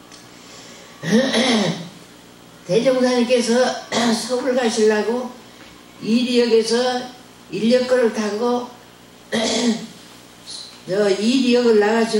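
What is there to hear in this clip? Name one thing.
An elderly woman speaks slowly and calmly into a microphone, in pauses.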